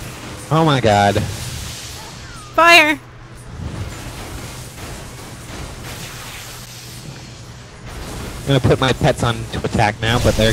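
Magical blasts zap and crackle in a fight.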